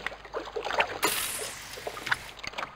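A lure splashes into water.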